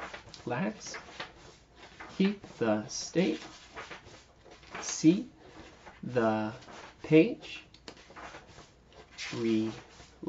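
A man reads aloud calmly and close by.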